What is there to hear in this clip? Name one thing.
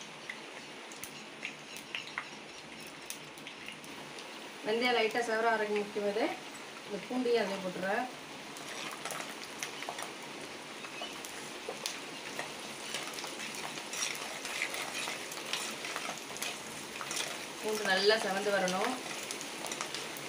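Hot oil sizzles and crackles in a pot.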